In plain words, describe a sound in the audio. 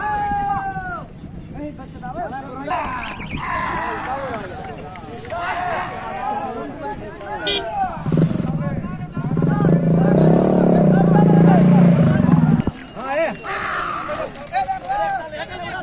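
A crowd of men and boys chatters and calls out nearby outdoors.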